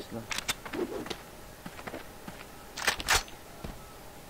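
A gun clicks as it is switched and readied.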